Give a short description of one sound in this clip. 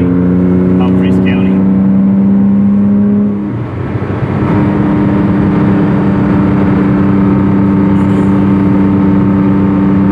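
A car engine hums steadily from inside the car, dipping briefly as it changes gear.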